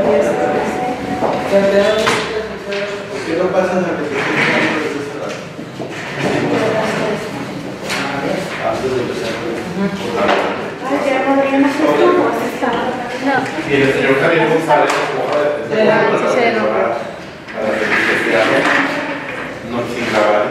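A woman speaks steadily to a group nearby.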